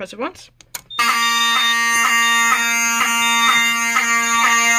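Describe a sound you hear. A fire alarm blares loudly in a steady, rapidly pulsing tone.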